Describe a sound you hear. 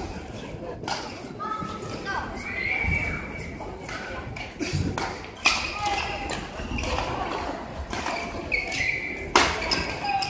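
Shuttlecocks are struck sharply with rackets in a rally.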